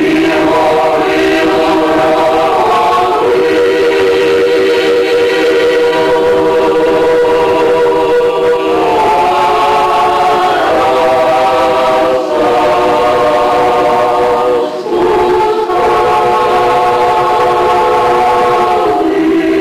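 A mixed choir of men and women sings a slow folk song together in harmony.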